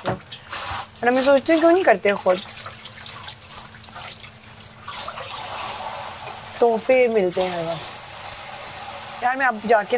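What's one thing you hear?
Dishes clink in a sink.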